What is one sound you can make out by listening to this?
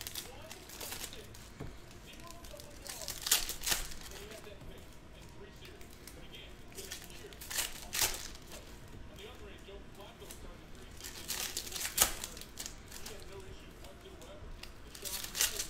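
Foil card packs crinkle and rustle as hands handle them.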